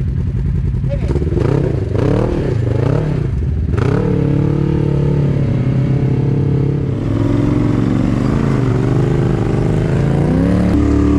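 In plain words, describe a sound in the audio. An off-road vehicle's engine revs up and down as it climbs over rocks.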